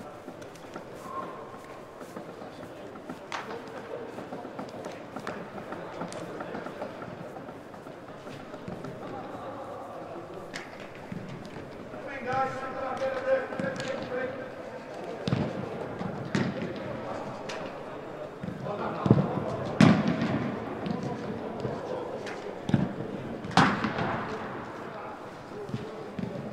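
Players shout to each other across a large echoing hall.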